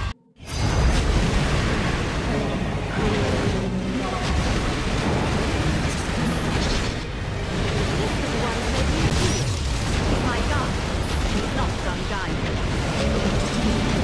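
Water rushes and sprays loudly.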